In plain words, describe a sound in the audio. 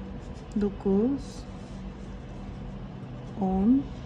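Yarn rustles softly as it is pulled through stitches with a needle.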